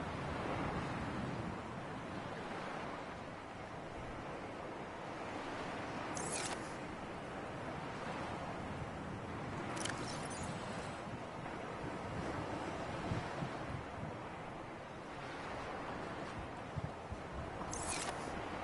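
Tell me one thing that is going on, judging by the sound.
Water sloshes and laps steadily outdoors.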